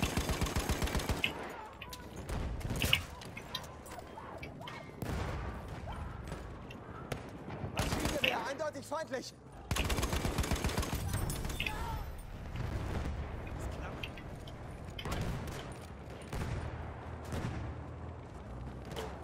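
Distant gunfire and explosions rumble on throughout.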